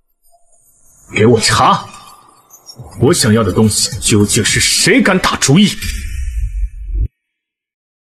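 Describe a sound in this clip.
A young man speaks in a low, firm voice close by.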